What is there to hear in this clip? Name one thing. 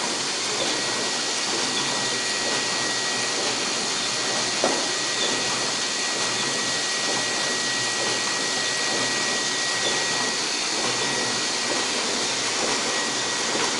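Printing machines run with a steady mechanical clatter and hum.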